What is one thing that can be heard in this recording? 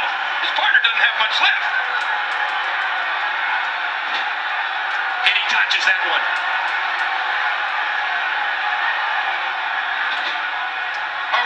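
A crowd roars and cheers steadily in a large hall.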